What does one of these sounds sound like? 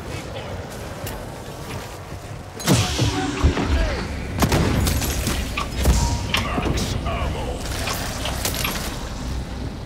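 Rapid gunshots and explosions boom.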